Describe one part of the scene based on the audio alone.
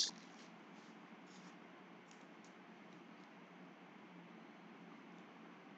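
Glossy trading cards rustle and slide against each other in someone's hands.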